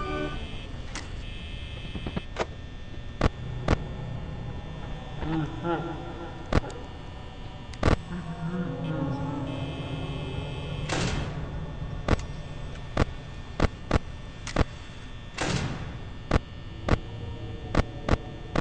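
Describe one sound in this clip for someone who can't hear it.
Buttons click sharply, again and again.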